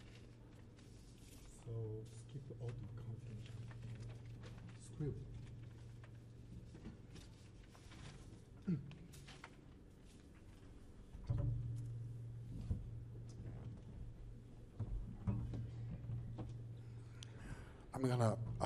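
A double bass plays deep plucked notes.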